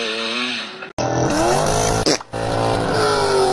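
A sports car engine revs loudly.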